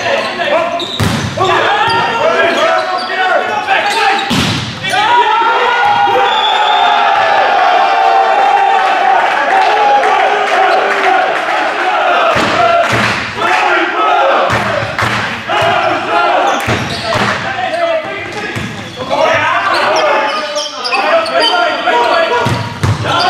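A volleyball is smacked hard, again and again, in an echoing hall.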